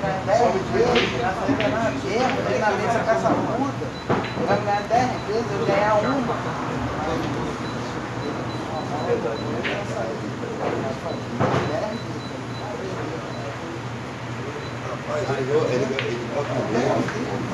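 Pool balls knock together and thud against the cushions.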